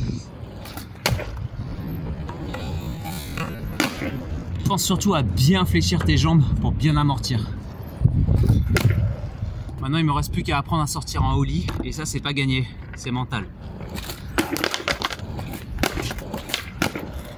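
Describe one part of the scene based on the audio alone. A skateboard snaps and lands with sharp knocks.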